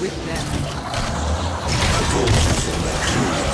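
Flesh squelches and tears in a brutal blow.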